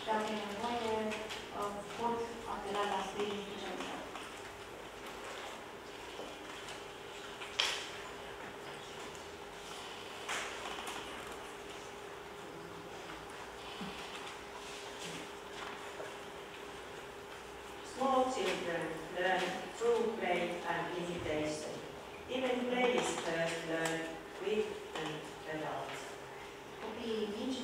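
A middle-aged woman speaks calmly into a microphone through a loudspeaker.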